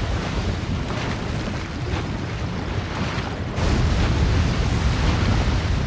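A burst of fire roars and crackles.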